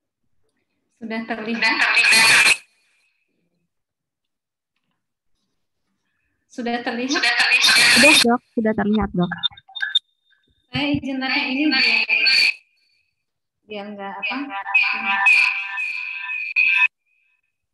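A woman speaks calmly over an online call, in short bursts with pauses.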